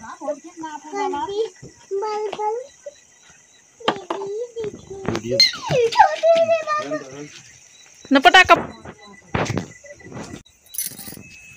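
A young child calls out and babbles close by.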